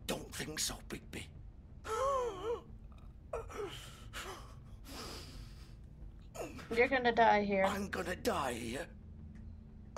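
An older man speaks in a weary, rasping voice.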